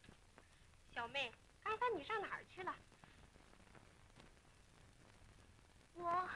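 A woman speaks in a short exchange, close by.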